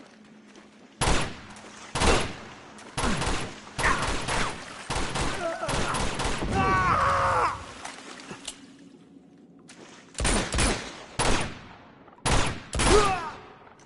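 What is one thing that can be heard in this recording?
Gunshots ring out in quick bursts, echoing off stone walls.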